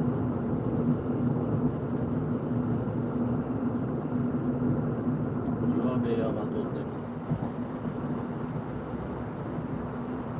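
Tyres roll steadily on smooth pavement.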